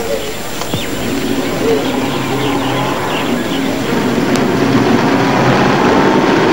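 A car engine hums as a car drives along a road.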